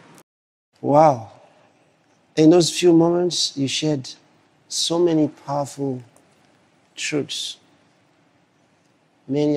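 A man speaks calmly and slowly into a microphone, with pauses.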